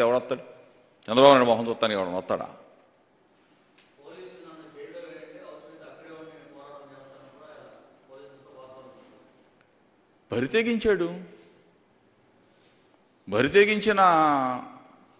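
A middle-aged man speaks firmly into a microphone, in bursts with pauses.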